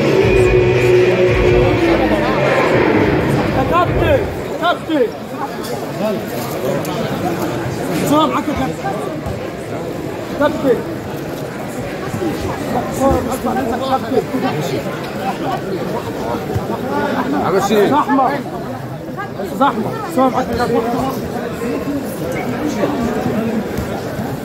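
A crowd of men talks and shouts all at once, close by, in an echoing hall.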